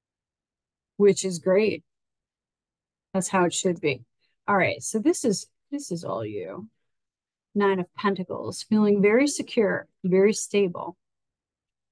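A woman speaks calmly and closely into a microphone, in short phrases with pauses.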